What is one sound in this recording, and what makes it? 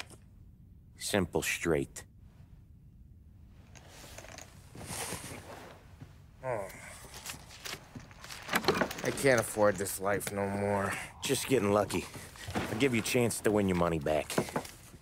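A man speaks calmly up close.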